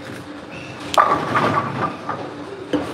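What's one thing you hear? Bowling pins crash loudly as a ball strikes them.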